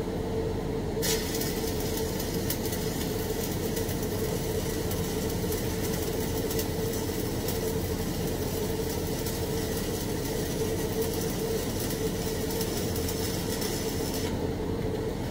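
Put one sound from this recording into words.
A welding arc crackles and sizzles steadily, then stops.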